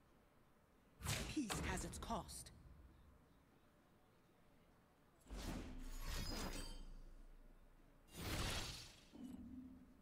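Magical game sound effects whoosh and chime in short bursts.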